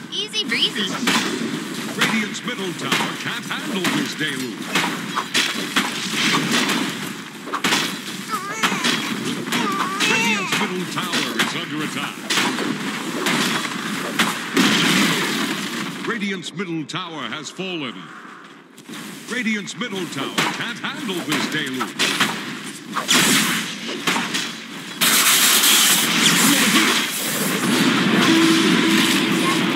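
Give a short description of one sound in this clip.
Game spell effects whoosh and crackle during a battle.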